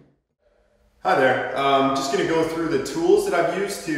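A man speaks close to the microphone.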